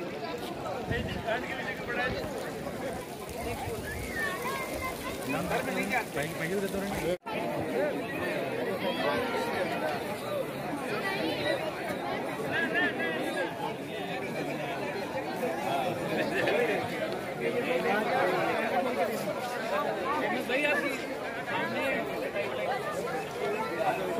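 A crowd of visitors chatters outdoors.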